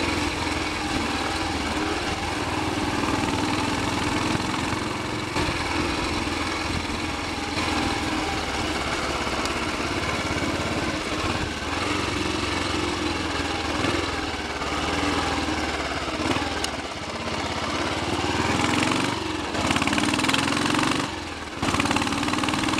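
Wind buffets the microphone on a moving motorcycle.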